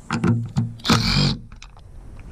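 A power driver whirs briefly.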